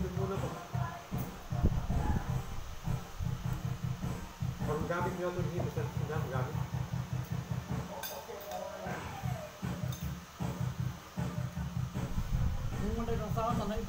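Several men and women talk and chat casually nearby.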